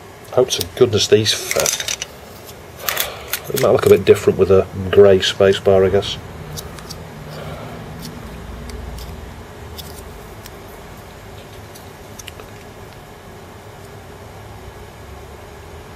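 Small plastic parts click and snap together.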